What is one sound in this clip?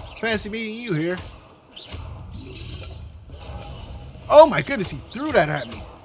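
Magic spells crackle and whoosh in quick bursts.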